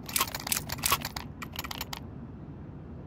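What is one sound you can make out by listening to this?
Sharp clicks and clatters come in quick bursts, then stop.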